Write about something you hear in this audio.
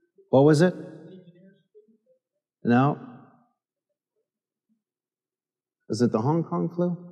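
A middle-aged man speaks with animation into a microphone in a large echoing hall.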